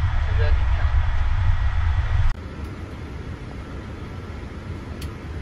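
A low aircraft engine drone hums steadily.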